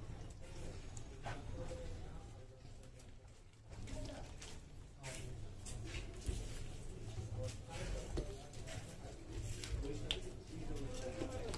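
Gloved hands swish and smear wet plaster.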